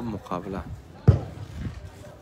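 A football is kicked with a thump.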